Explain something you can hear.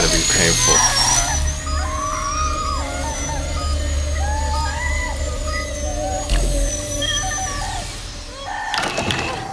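A machine hums with a warbling electronic tone.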